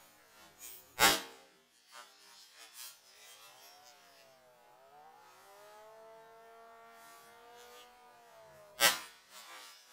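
A hammer smashes into a laptop with a sharp plastic crack.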